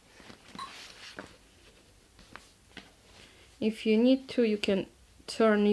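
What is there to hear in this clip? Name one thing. A fabric strap rustles softly as it is folded and handled.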